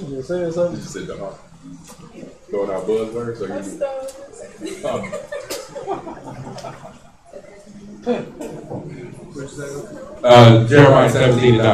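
Men laugh close by.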